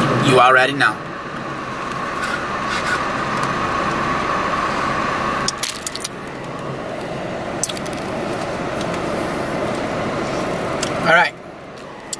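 A young man slurps a drink through a straw.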